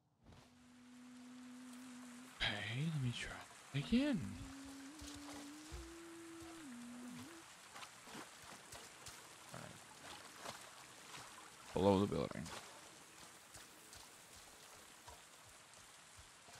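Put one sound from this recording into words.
Footsteps pad across soft ground.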